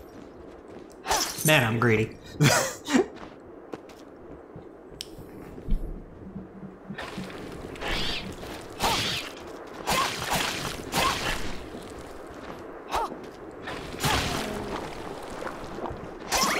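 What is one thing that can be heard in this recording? Game sound effects of sword slashes and hits ring out in short bursts.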